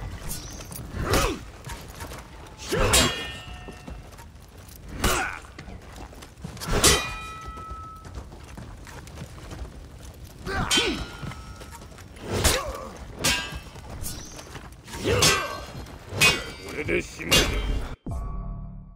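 Weapons clash and strike with sharp metallic impacts.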